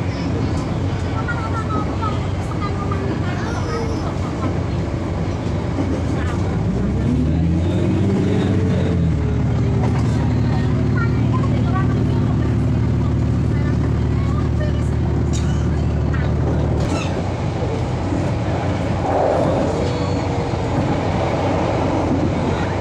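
A diesel railcar's engine drones from inside the carriage, revving up and then holding a steady note.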